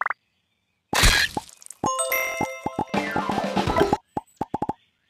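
A cheerful game jingle plays.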